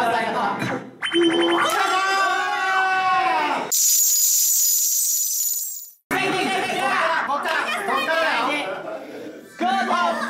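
Electronic slot machine jingles and chimes play loudly.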